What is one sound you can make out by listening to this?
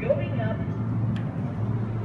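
A lift button clicks as it is pressed.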